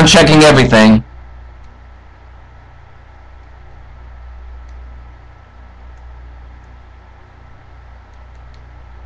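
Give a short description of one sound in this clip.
Soft, quiet video game music plays steadily.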